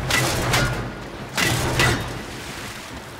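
Two loud rushing whooshes burst out in quick succession.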